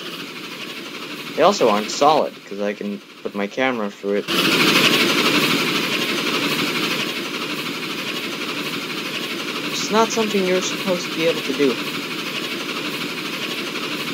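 A steam train runs along a railway track with a steady rushing hiss.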